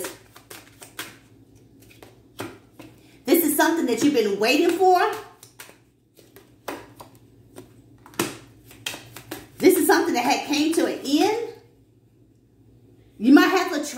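Cards shuffle and flick with quick, light clicks.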